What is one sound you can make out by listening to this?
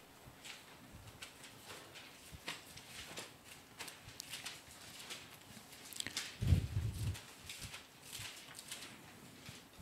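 Paper rustles as a man turns pages.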